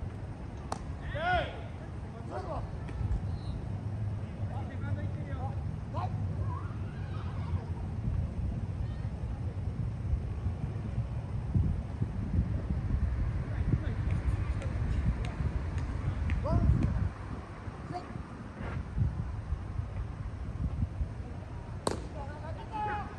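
Players call out to each other from far across an open field.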